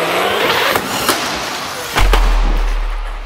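A toy car crashes against a metal roller door with a sharp bang.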